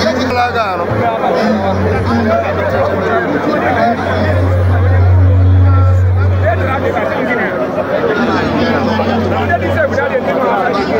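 A large outdoor crowd chatters and shouts all around.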